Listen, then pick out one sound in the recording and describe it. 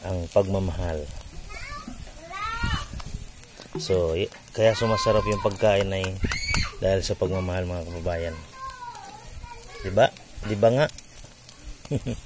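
Metal tongs clink against a grill.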